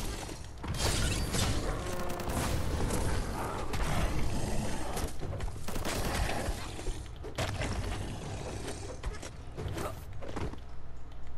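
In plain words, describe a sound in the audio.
Blades swing and strike a large beast in quick, sharp hits.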